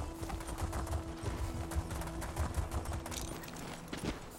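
Hooves thud quickly on a dirt path as a horse gallops.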